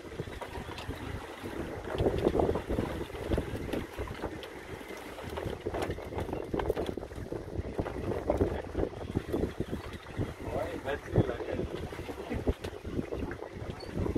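Wind blows hard outdoors across open water.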